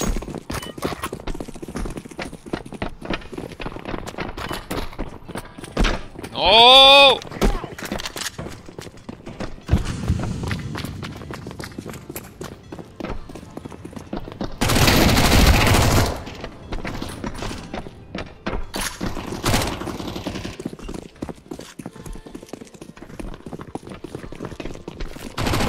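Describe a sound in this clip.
Quick footsteps patter on hard floors and metal.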